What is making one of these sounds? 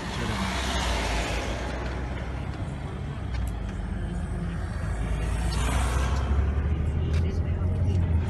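Passing vehicles whoosh by close outside.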